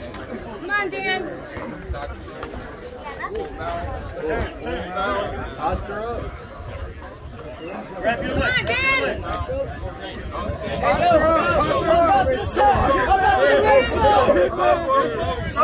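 A crowd of men and women shouts and cheers nearby outdoors.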